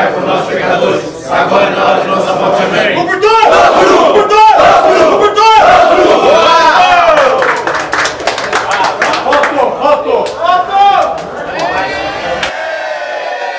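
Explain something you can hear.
A group of men shout and chant loudly together in an echoing room.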